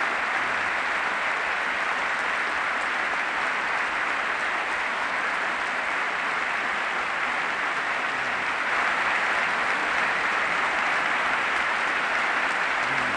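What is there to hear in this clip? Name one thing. A large crowd applauds loudly in a big hall.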